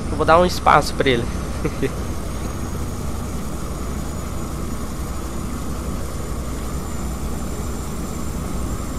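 A truck engine hums steadily at speed.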